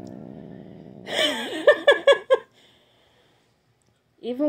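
A cat meows loudly several times.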